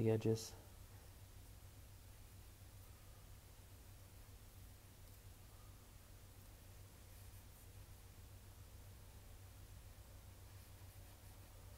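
A cloth softly rubs across a watch's glass face.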